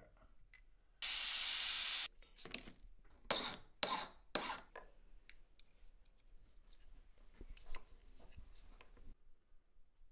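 A small metal ring clicks and taps softly between fingers.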